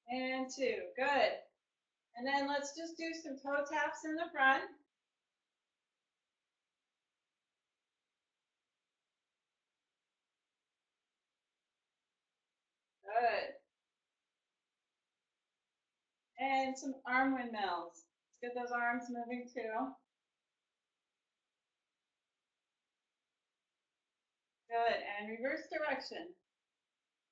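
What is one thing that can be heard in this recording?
A woman speaks calmly and clearly, close by, in short bursts with pauses.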